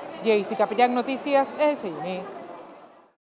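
A young woman speaks clearly into a microphone, close by.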